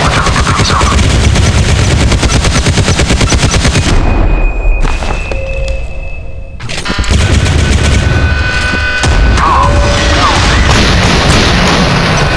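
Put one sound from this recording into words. Cannon fire rattles rapidly.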